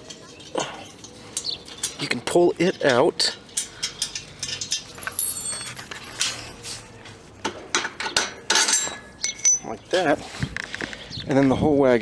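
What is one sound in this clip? Metal parts of a cart hitch clink and rattle as they are handled.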